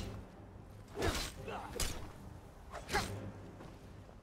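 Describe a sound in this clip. Weapons clash and strike sharply.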